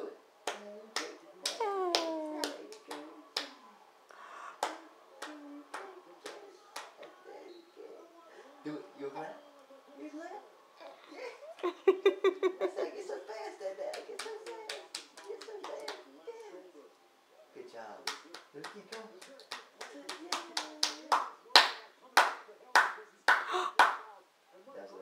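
A man claps his hands in a steady rhythm.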